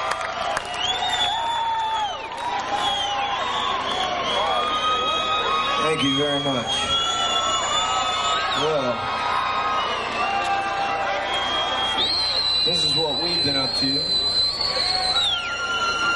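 A band plays loud, droning electric guitar music live.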